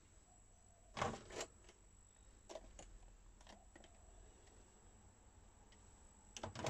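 A plastic videotape cassette clatters as it is pulled out and handled.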